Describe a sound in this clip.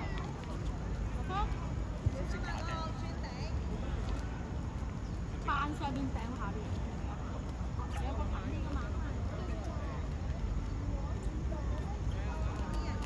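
Children shout and call out across an open outdoor court.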